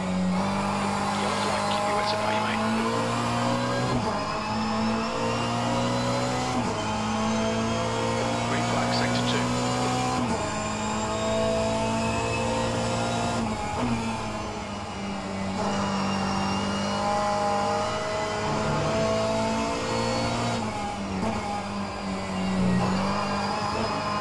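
A racing car engine roars, rising in pitch and dropping sharply at each gear change.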